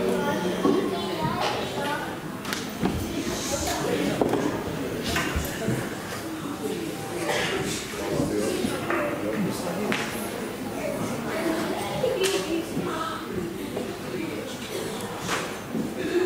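A crowd of men and women murmur and chat nearby.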